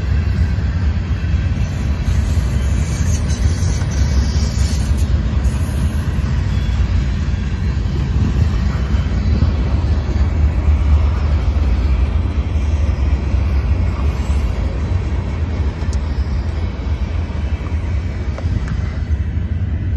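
A long freight train rumbles steadily past.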